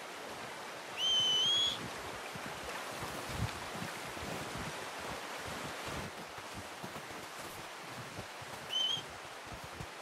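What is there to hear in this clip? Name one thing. A man whistles loudly.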